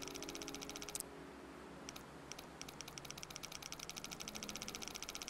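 A combination lock dial clicks rapidly as it turns.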